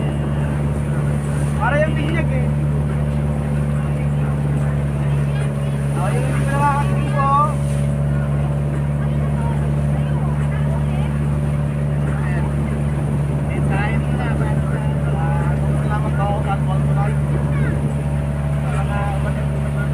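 A boat engine drones steadily and loudly throughout.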